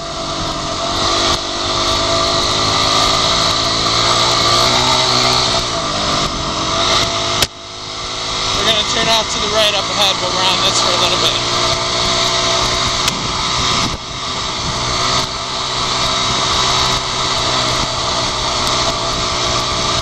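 A dirt bike engine drones and revs close by.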